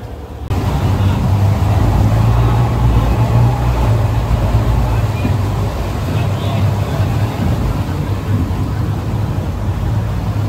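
Water splashes and rushes against a moving boat.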